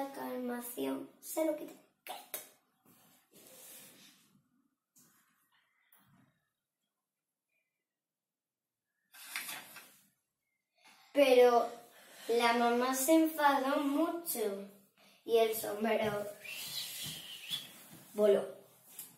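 A young girl sings nearby.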